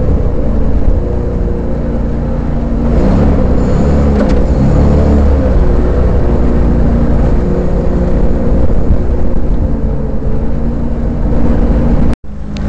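Water splashes and rushes against a vehicle.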